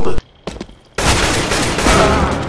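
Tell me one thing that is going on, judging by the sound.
A rifle fires a rapid burst of gunshots.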